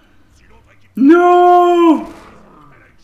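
A large beast lets out a loud bellowing roar.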